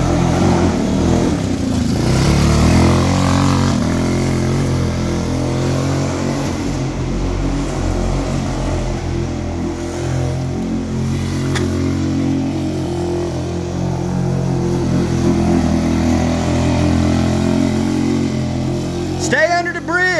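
A small buggy engine buzzes and rumbles steadily.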